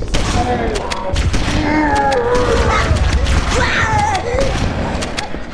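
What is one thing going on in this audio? A shotgun fires several times.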